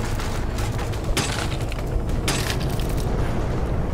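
Wooden boards crack and break.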